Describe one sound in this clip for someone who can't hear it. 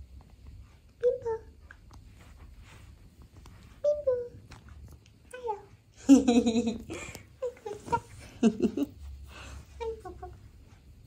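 A cat meows in short calls.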